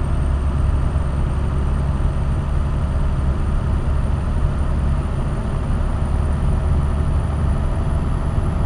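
Tyres roll and hum on the road.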